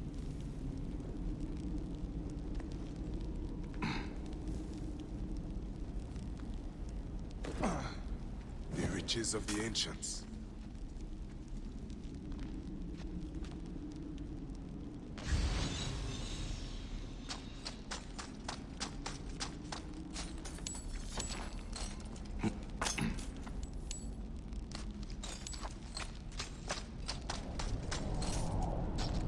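A torch flame crackles.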